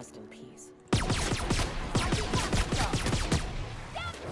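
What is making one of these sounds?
A gun fires rapidly in quick bursts.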